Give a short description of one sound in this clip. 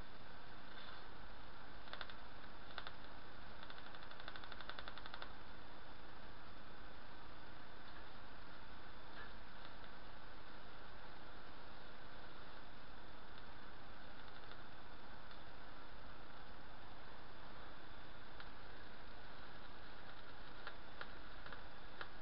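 Electric sparks crackle and buzz from a coil's tip to a screwdriver.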